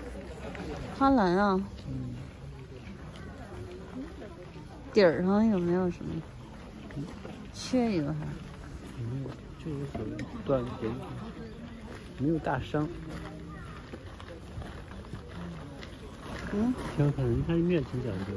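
A woman talks calmly close by, in short phrases.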